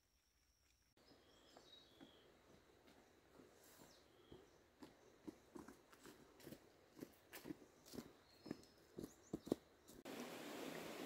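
Footsteps crunch through dry brush on a steep trail.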